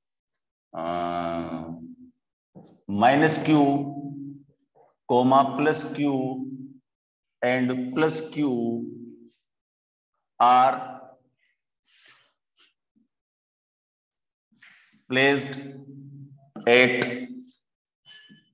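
A middle-aged man speaks slowly and clearly in phrases, as if dictating, close to a microphone.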